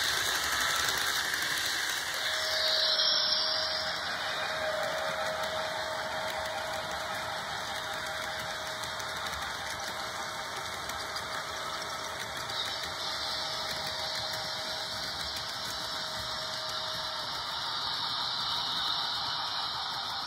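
A model train rumbles and clicks steadily along its track.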